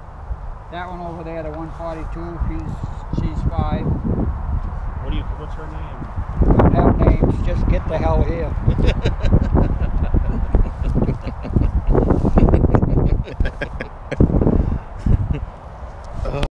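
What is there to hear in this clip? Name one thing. Men talk casually close by outdoors.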